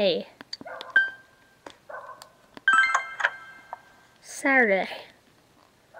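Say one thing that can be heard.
A game menu chimes as an option is picked.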